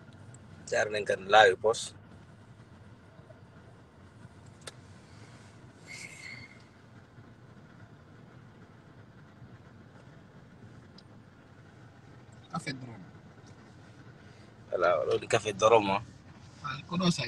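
A car engine hums low and steady, heard from inside the car.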